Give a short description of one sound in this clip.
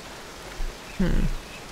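A young woman speaks briefly and casually into a close microphone.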